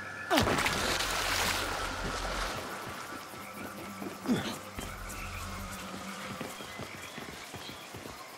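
Footsteps rustle through thick plants.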